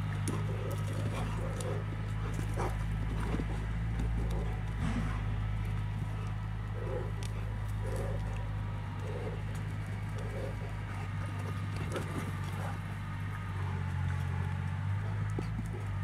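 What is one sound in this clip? Dogs' paws thud and scuff on bare dirt as they run.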